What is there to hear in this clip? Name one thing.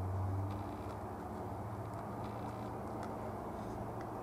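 A paintbrush dabs softly on canvas.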